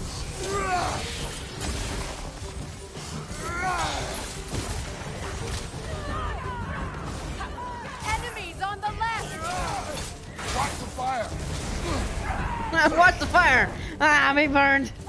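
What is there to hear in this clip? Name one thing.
Heavy blows thud and clang in a fight.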